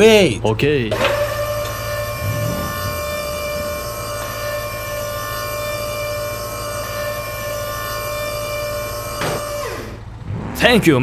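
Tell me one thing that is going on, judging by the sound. Steel loading ramps on a flatbed trailer lower with a steady mechanical whine.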